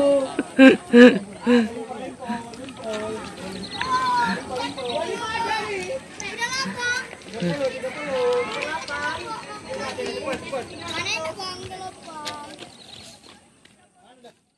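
Children chatter and shout excitedly nearby, outdoors.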